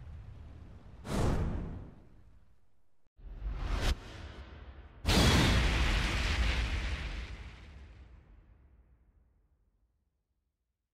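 A sharp whooshing boom bursts out and rumbles away slowly.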